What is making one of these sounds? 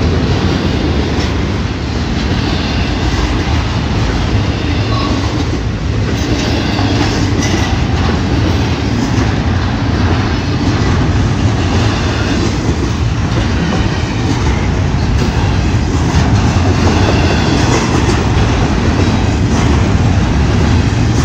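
Wind roars from the passing train.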